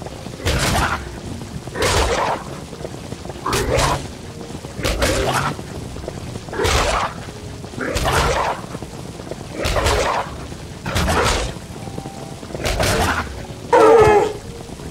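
Short whooshing attack sounds come in a steady, repeated rhythm.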